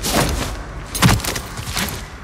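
A figure lands with a heavy thud on a metal floor.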